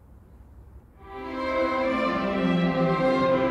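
A string orchestra begins to play loudly, ringing through a large echoing hall.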